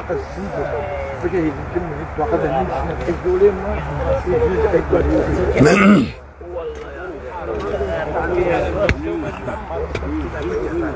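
Several men talk outdoors, close by.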